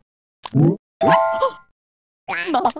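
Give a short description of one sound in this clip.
A bright cartoon chime rings.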